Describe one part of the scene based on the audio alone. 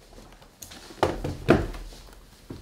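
A laptop thuds down onto a wooden table.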